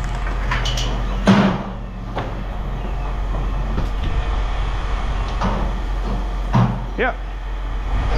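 Metal clatters as an aluminum frame is set down on a pile.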